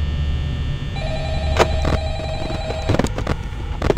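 Electronic static hisses and crackles.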